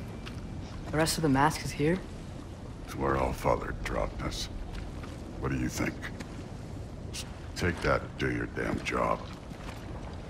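A man speaks in a deep, gruff voice, close by.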